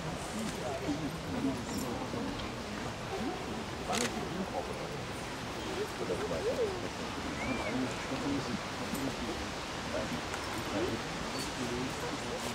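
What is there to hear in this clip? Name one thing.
Footsteps shuffle slowly on a dirt path.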